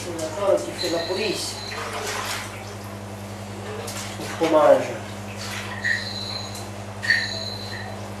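Water sloshes and splashes as hands knead.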